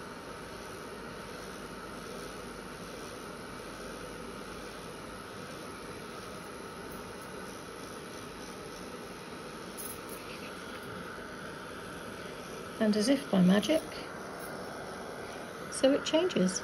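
A hair dryer blows with a steady whooshing hum.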